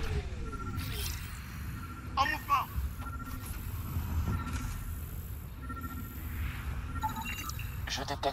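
A scanner gives short repeated electronic beeps.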